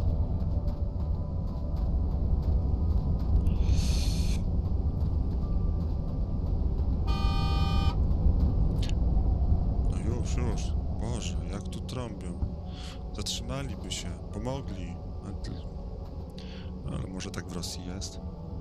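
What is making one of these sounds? Wind howls steadily in a snowstorm.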